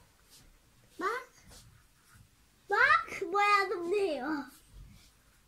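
A young child speaks in a high, excited voice close by.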